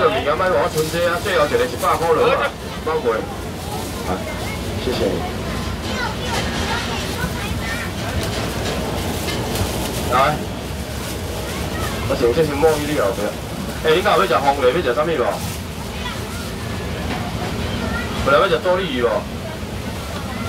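A busy crowd murmurs outdoors in the background.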